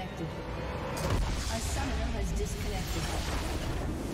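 Game battle sounds crash and rumble.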